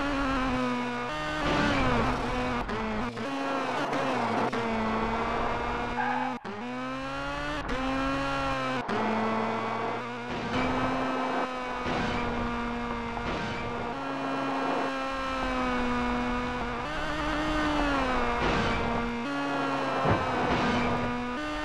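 A rally car engine roars, revving up and down and changing gear.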